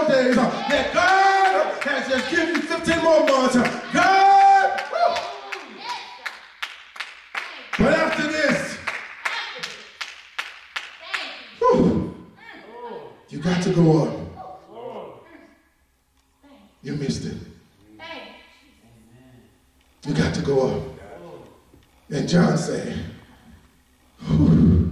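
A man preaches with passion into a microphone, his voice ringing through a large echoing hall.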